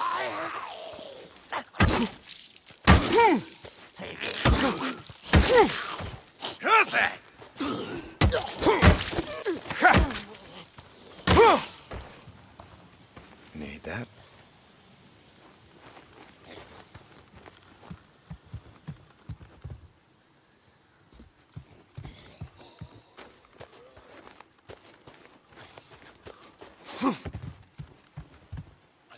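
Footsteps crunch on dry grass and gravel.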